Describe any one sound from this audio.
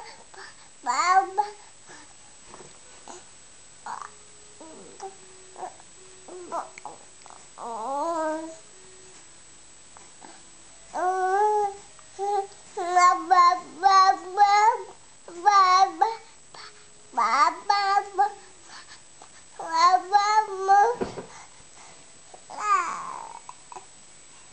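A baby babbles and squeals loudly, close by.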